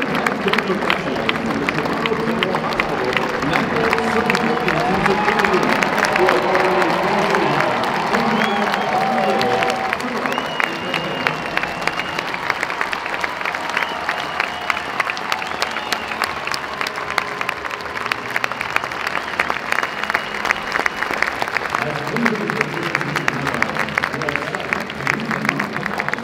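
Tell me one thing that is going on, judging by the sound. A crowd claps hands nearby.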